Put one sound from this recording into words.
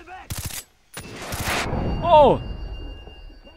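An assault rifle fires a burst.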